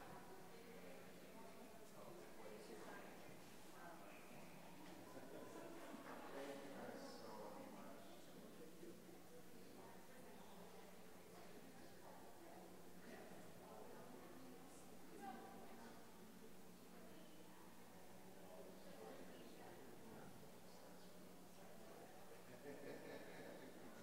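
Adults murmur quietly at a distance in a large echoing hall.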